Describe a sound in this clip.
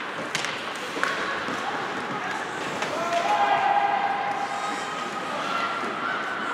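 Players shout to each other in a large echoing rink.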